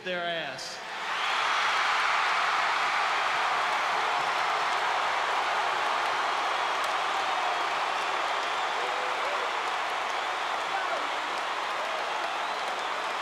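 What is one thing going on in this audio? A large crowd cheers and applauds in a large arena.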